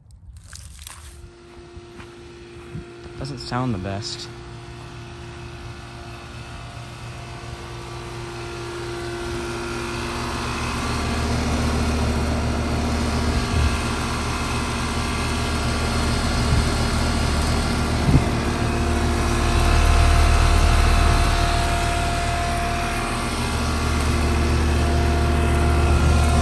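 An outdoor air conditioning unit hums and whirs steadily, growing louder up close.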